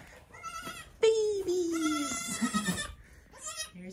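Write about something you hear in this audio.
A goat bleats nearby.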